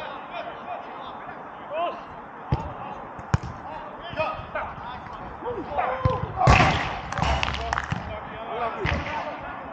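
Men shout and call out to each other across an open pitch outdoors.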